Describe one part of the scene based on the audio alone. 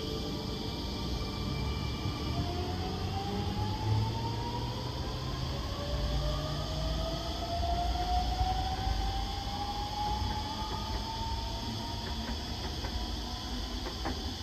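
Train wheels rumble over the rails outdoors.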